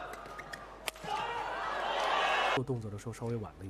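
A crowd in a large hall cheers and applauds.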